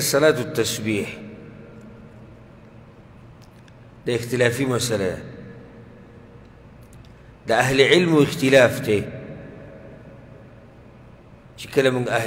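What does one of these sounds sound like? A man recites in a chanting voice through a microphone, in short phrases with pauses, in a reverberant room.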